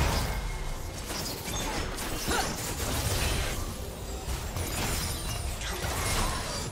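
Game spell effects zap and crackle during a fight.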